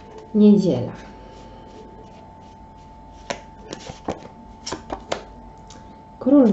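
Cards rustle and flick as a deck is shuffled by hand.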